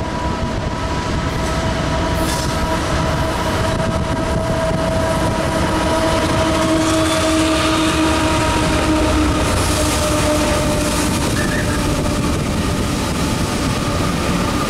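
Empty coal hopper cars rattle and clack over steel rails.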